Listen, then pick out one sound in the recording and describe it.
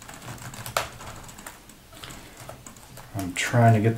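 Plastic clicks and snaps as a laptop's cover strip is pried loose.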